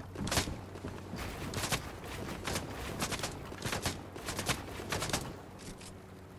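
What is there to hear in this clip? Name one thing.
A blade swings and chops into wood again and again.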